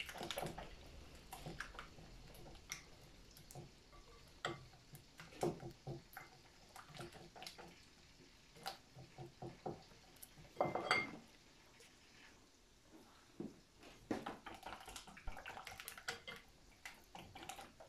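A wire whisk beats batter in a glass bowl, clinking against the glass.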